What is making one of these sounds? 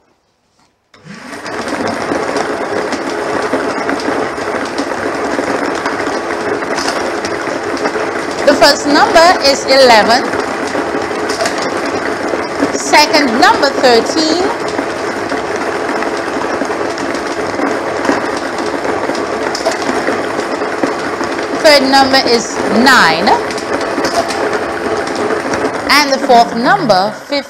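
Lottery balls rattle and tumble steadily in a blower machine with a rushing hum.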